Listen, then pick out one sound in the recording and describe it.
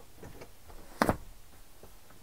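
A seat folds down and latches with a heavy clunk.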